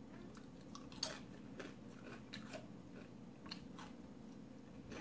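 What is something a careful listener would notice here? A woman crunches tortilla chips close up.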